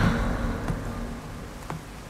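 A mine cart rolls and rattles along a track.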